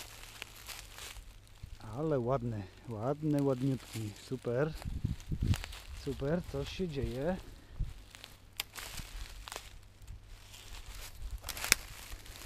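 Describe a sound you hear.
Footsteps crunch on dry leaves and snap twigs.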